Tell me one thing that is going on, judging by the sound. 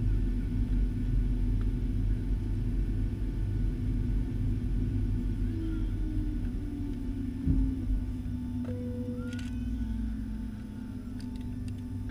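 Aircraft engines hum in a low, steady drone, heard from inside a cabin.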